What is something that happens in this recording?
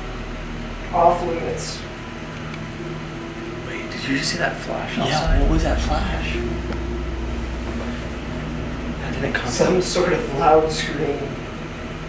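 A young man speaks in a hushed, tense voice close by.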